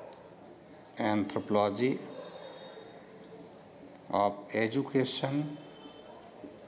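A man speaks calmly, as if explaining.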